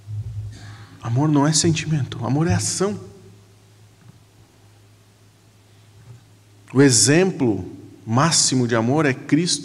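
A middle-aged man speaks with animation through a microphone in an echoing room.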